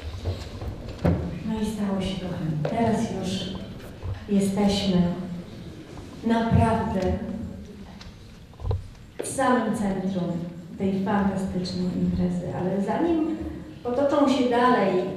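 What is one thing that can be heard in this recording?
A woman sings into a microphone in a reverberant hall.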